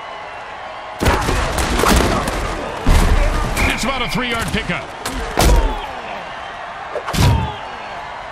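Armoured players crash together in heavy tackles with loud thuds.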